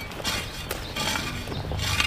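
A hoe chops into loose soil.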